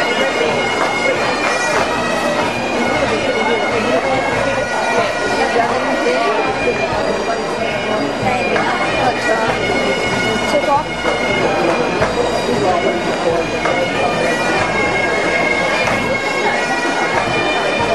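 A pipe band plays Highland bagpipes outdoors, with the drones sounding beneath the melody.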